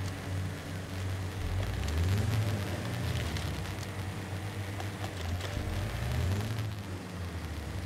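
An off-road vehicle's engine rumbles low as it crawls over rough ground.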